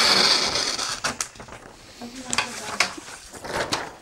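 Stiff paper rustles and crackles as it is lifted.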